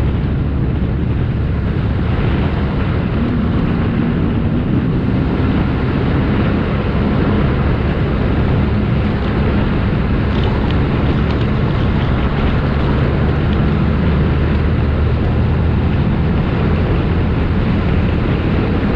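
Tyres crunch and hiss over loose sand.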